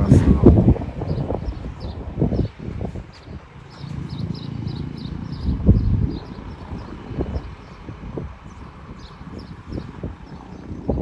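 A large bus engine rumbles as the bus drives slowly past.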